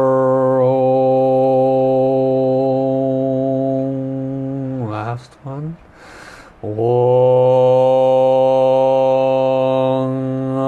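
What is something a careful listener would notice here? A man chants a long, steady low tone close to a microphone.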